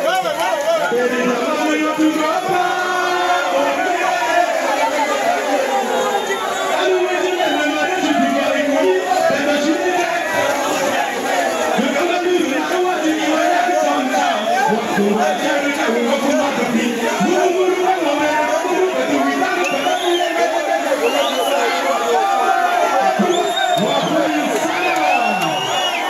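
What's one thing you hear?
A crowd cheers and shouts excitedly nearby.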